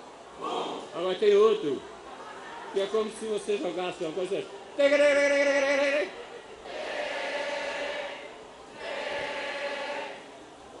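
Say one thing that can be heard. An elderly man chants and sings through a microphone.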